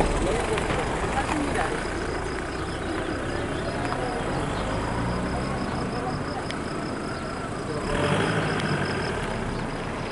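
A motorcycle engine hums as it rides past.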